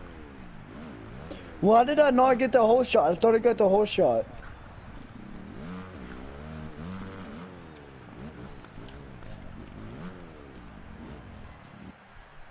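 A motorbike engine idles and revs up and down.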